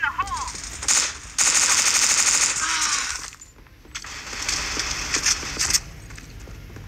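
Rapid gunfire rattles in close bursts.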